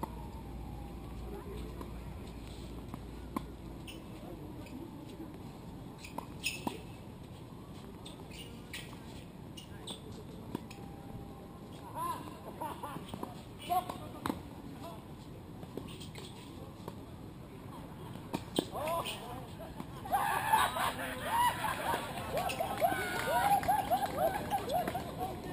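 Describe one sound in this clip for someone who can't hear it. Tennis balls pop off rackets in a rally outdoors.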